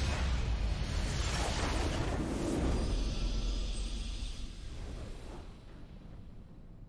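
A huge explosion booms and rumbles, then fades away.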